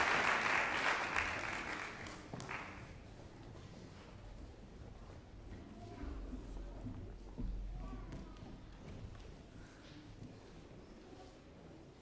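Footsteps shuffle across a wooden stage.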